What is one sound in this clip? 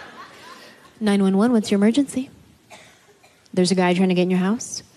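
A young woman speaks expressively, close by.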